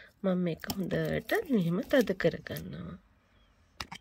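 A garlic bulb thuds softly onto soft clay.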